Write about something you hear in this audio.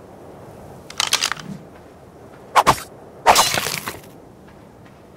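A spear chops into a carcass with wet, squelching thuds.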